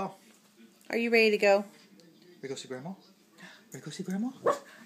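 A small dog yips and whines close by.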